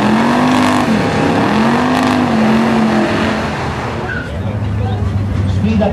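Tyres screech and spin as a car does a burnout.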